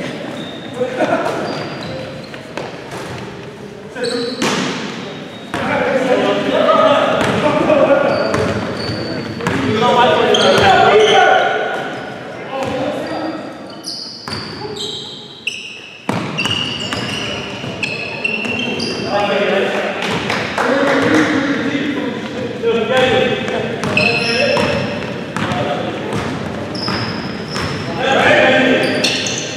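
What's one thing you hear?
Men shout and call out across a large echoing gym.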